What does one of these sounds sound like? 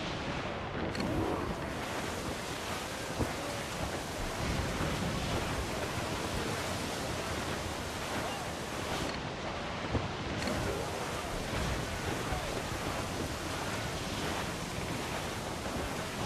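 Heavy waves crash and roar around a ship in a storm.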